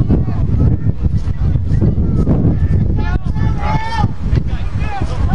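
Men on the sideline shout and call out nearby.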